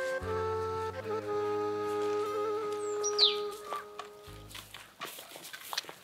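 Footsteps crunch slowly on grass and dirt.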